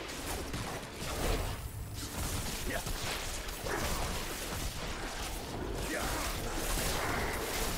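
Weapons strike enemies in rapid blows.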